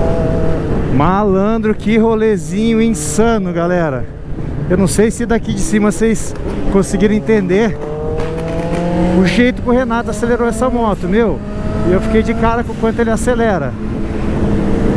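A motorcycle engine revs up and down in sharp bursts.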